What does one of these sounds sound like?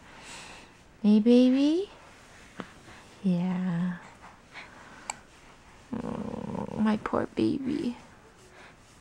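A baby coos and babbles softly, close by.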